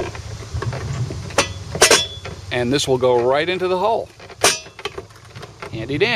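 A plastic fitting scrapes and clicks as a hand screws it in.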